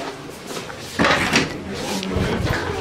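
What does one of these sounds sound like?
A wooden door opens with a click of its handle.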